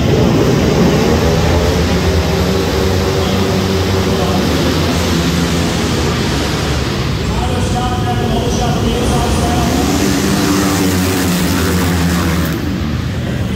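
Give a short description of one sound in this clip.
Motorcycles race past, their engines rising and falling as they speed up and slow down.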